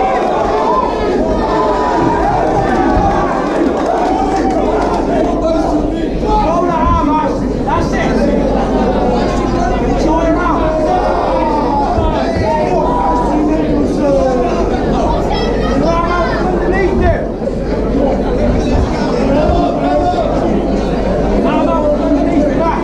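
A crowd of men and women shouts and cheers loudly in an echoing hall.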